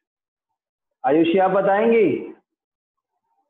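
A man speaks briefly and calmly, close to a microphone.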